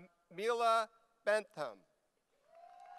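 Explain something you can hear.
An elderly man reads out names into a microphone, heard through loudspeakers in a large hall.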